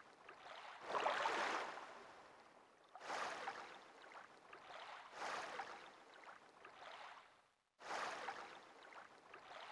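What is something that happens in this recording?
Water splashes softly with wading steps.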